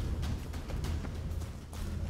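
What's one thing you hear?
A torch fire crackles nearby.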